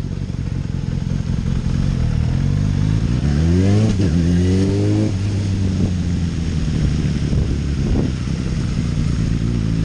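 A motorcycle engine rumbles close by and revs up, then settles.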